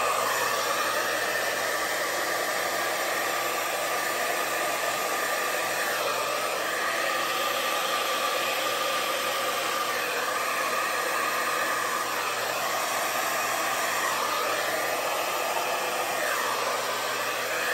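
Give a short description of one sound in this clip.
A hair dryer blows with a steady whoosh.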